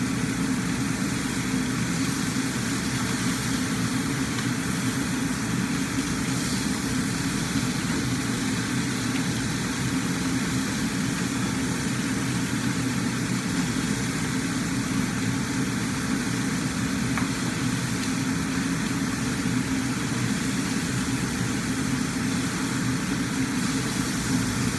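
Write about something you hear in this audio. Food sizzles in a wok.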